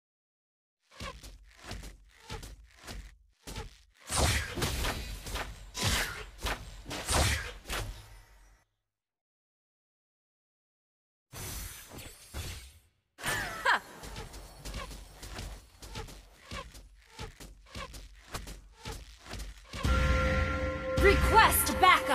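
Electronic game sound effects of magic attacks whoosh and crackle in short bursts.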